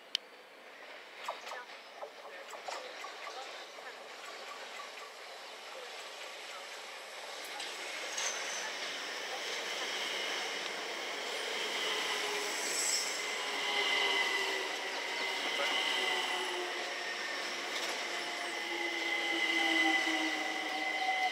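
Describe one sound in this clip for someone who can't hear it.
An electric train approaches, rumbling along the tracks.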